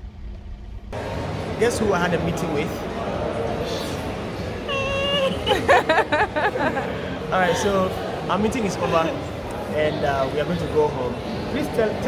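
A young man talks cheerfully, close by.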